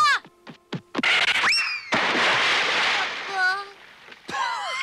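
A man shouts in alarm.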